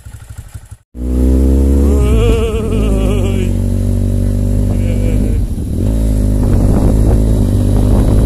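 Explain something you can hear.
A motorcycle engine roars loudly and rises in pitch while riding.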